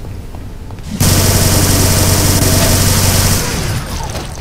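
A heavy machine gun fires in a rapid, steady burst.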